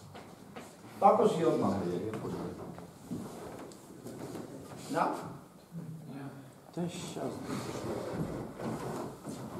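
A man speaks calmly in a room with some echo.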